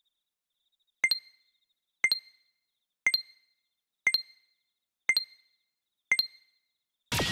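Short electronic beeps count down, about one per second.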